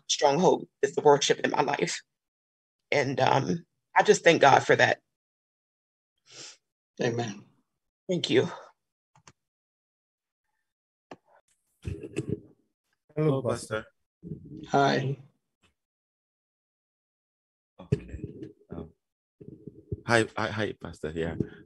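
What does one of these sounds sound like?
Two men talk over an online call.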